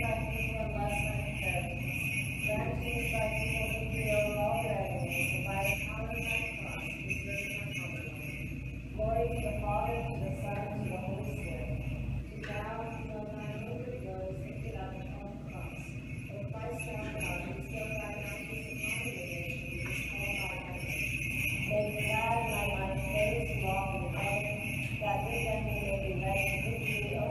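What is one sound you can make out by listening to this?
A man chants in a steady, singing voice in an echoing hall.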